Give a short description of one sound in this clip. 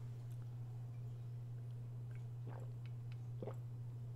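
A woman sips a drink from a mug.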